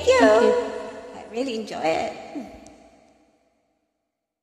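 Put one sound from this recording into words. A woman sings a drawn-out melody close to a microphone.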